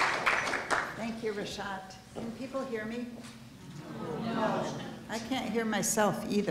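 A woman speaks warmly into a microphone.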